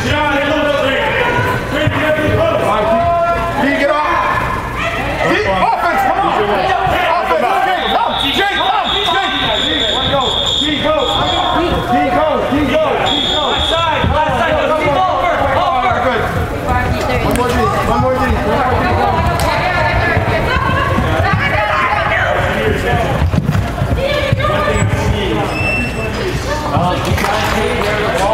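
Youth lacrosse players and adult spectators shout and call out in a large echoing hall.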